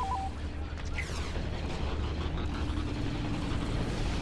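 A blaster rifle fires rapid laser shots.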